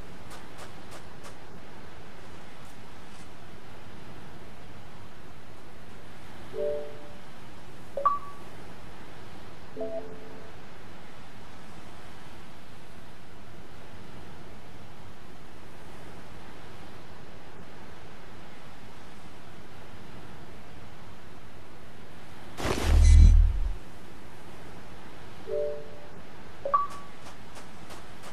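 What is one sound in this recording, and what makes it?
Waves wash softly onto a shore.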